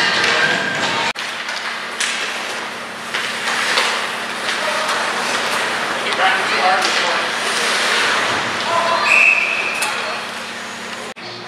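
Ice hockey skates scrape and carve across ice in an echoing arena.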